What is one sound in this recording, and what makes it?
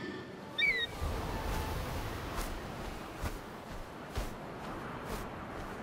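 Waves wash onto a beach.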